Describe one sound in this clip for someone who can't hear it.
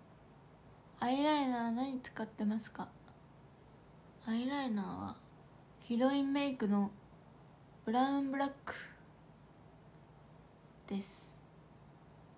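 A young woman speaks close to a microphone in short, lively bursts.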